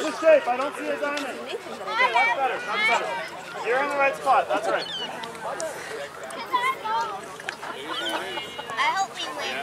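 Young children chatter and call out nearby outdoors.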